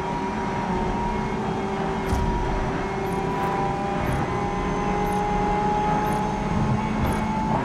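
A race car engine roars steadily as the car speeds up.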